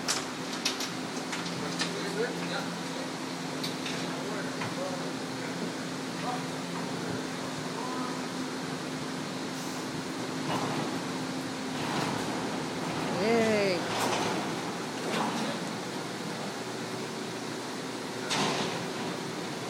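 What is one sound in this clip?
Metal clanks and rattles as a gangway is moved.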